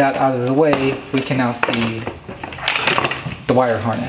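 Hard plastic parts rattle and clatter as they are handled.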